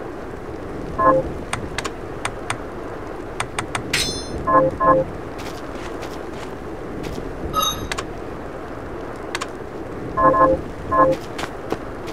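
Bright menu chimes ring out now and then.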